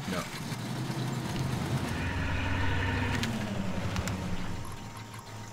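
A truck engine cranks and rumbles loudly to life.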